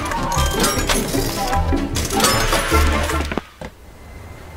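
Cheerful game music plays, then stops.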